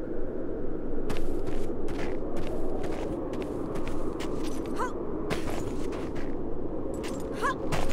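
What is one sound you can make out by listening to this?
Footsteps run over snowy ground.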